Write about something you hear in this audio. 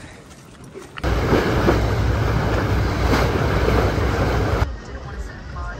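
Water rushes and splashes past a moving boat.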